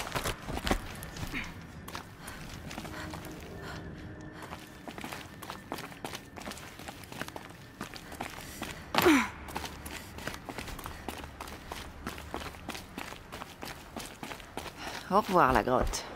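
Footsteps crunch on snow and stone.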